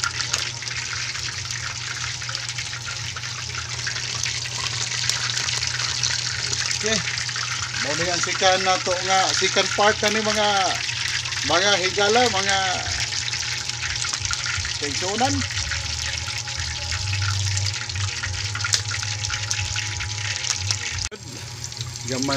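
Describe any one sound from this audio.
Hot oil sizzles and crackles steadily in a pan.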